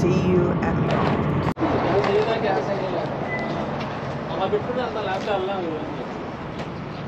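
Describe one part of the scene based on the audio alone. A middle-aged woman talks calmly close by.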